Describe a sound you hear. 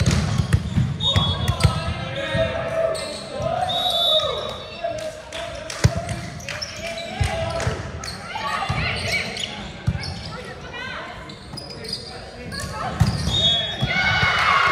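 Sneakers squeak sharply on the wooden floor.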